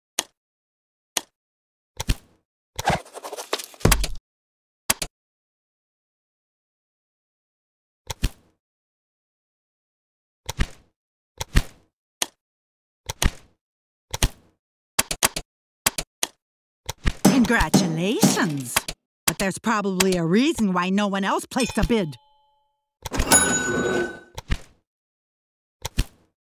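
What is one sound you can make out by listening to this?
Short interface clicks sound as game menus open and close.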